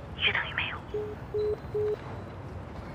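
A phone beeps several times.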